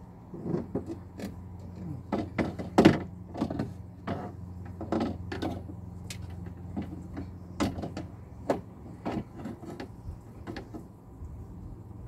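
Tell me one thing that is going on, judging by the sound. Plastic parts click and knock as they are handled.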